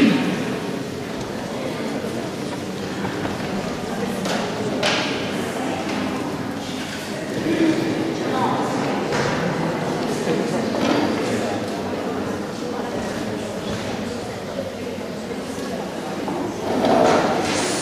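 A small ensemble of strings and flute plays music in an echoing hall.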